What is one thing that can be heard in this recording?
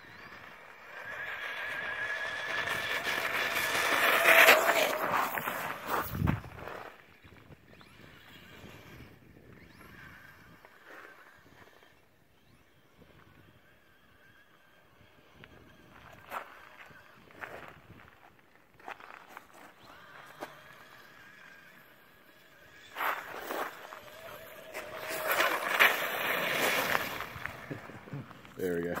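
A small electric motor whines loudly as a radio-controlled car speeds over pavement.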